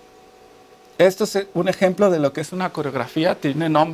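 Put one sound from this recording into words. A man speaks with animation through a clip-on microphone.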